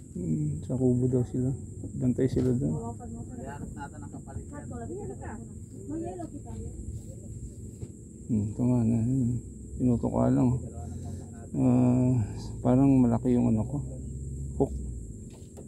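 A man talks nearby in a relaxed, animated way.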